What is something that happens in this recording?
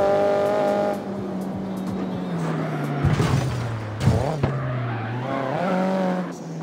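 A car engine drops in pitch as the car slows.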